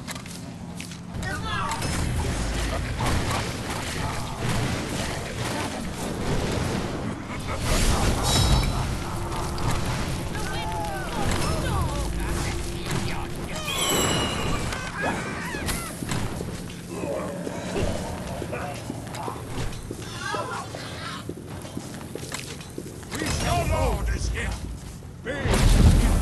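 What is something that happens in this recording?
Magic spells burst and crackle in a video game battle.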